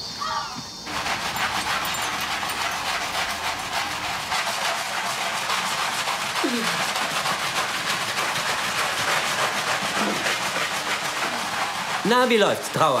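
Brushes scrub a wet floor with a steady rasping.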